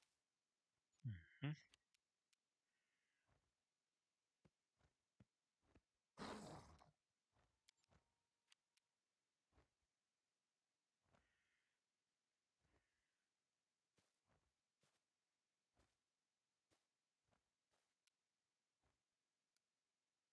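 Magic blasts and blows ring out in short bursts.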